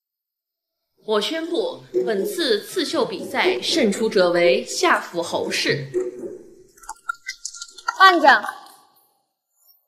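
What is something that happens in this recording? A young woman announces clearly and loudly.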